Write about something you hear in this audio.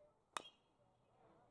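A baseball smacks into a catcher's mitt with a sharp pop.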